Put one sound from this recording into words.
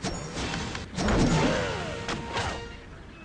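A cartoon bird squawks loudly.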